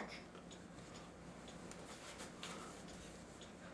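Paper rustles as a young man handles a sheet.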